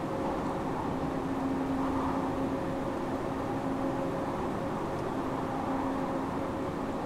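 A train rumbles along the rails through a tunnel.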